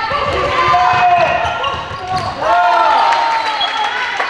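Spectators cheer from close by.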